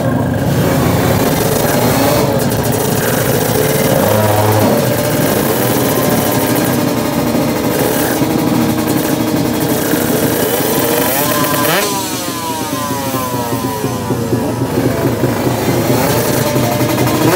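A motorcycle engine idles loudly and revs up close by.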